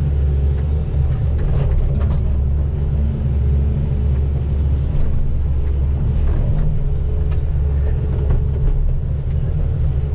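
A diesel hydraulic excavator engine rumbles under load, heard from inside the cab.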